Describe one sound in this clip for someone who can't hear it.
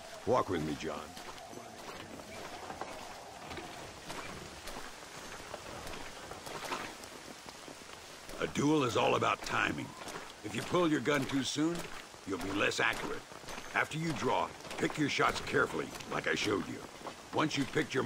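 Footsteps crunch on dirt.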